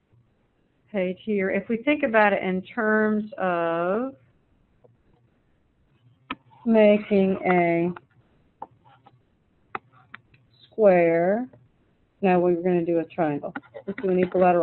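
A woman speaks calmly into a microphone, heard over an online call.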